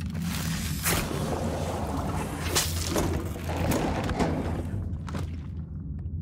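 Wet flesh squelches and tears.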